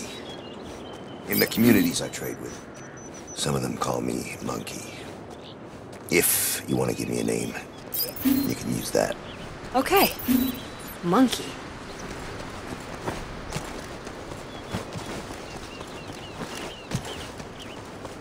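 Footsteps pad softly over damp ground.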